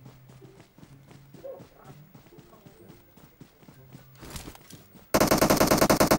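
A game character crawls through rustling grass with soft, regular footsteps.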